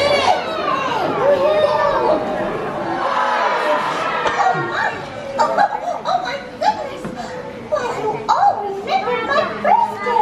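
Music plays loudly through loudspeakers in a large hall.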